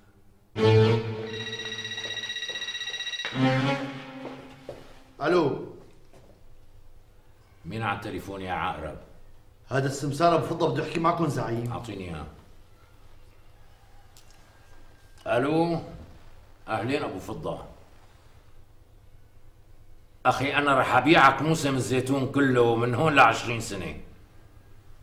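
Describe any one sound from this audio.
A man speaks loudly and forcefully, with long pauses.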